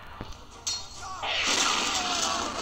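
An explosion bursts with a roar.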